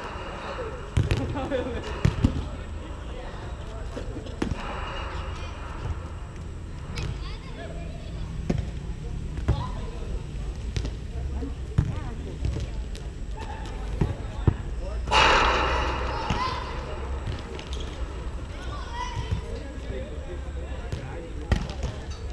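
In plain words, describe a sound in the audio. A volleyball thuds off players' hands.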